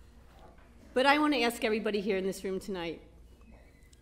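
A woman speaks through a microphone and loudspeakers in a large room.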